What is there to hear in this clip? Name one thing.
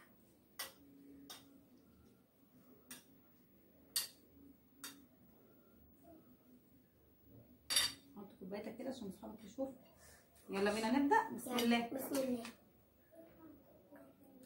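Spoons clink against plates.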